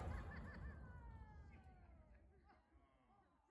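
A loud blast booms and rolls away in a long fading echo.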